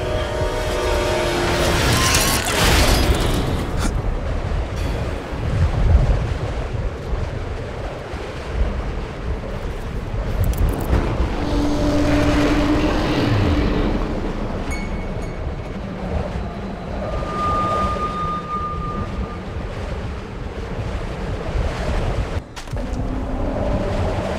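Strong wind howls and gusts outdoors in a snowstorm.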